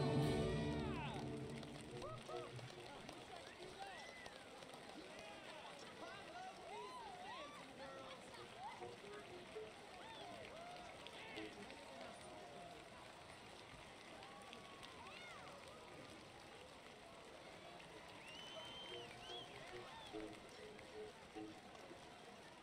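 A theatre audience applauds and cheers.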